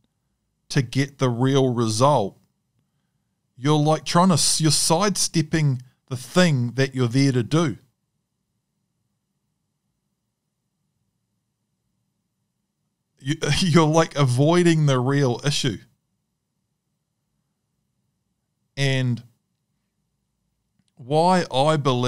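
A man speaks with animation into a close microphone, pausing now and then.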